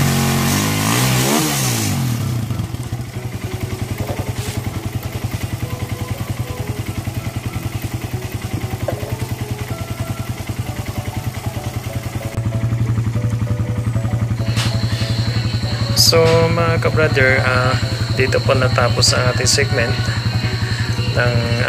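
A motorcycle engine idles close by with a fast, steady putter.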